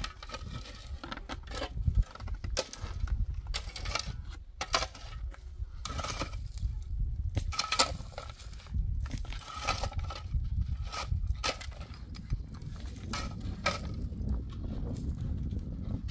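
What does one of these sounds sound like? A hoe scrapes and knocks against stony dirt.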